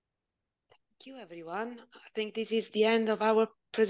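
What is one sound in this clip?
A woman speaks brightly over an online call.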